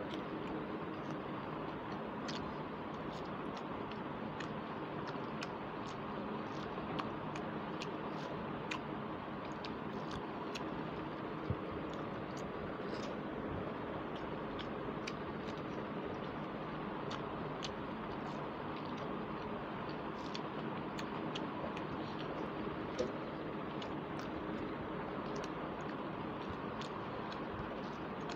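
A woman chews food noisily and smacks her lips close to a microphone.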